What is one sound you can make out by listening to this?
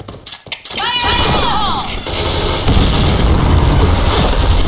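Twin submachine guns fire rapid bursts in a video game.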